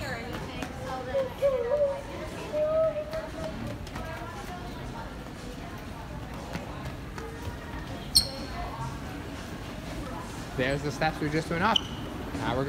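A young child shouts and squeals nearby.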